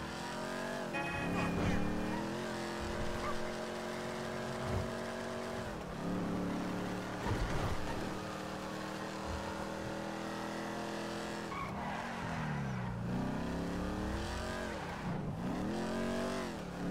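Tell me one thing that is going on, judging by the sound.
A game car's engine revs and shifts gears as the car speeds along.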